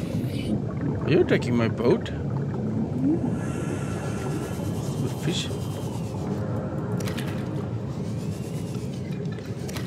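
Water swirls and bubbles softly around the vehicle.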